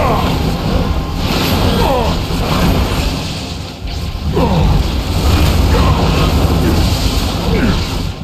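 Magic spells whoosh and crackle in a game.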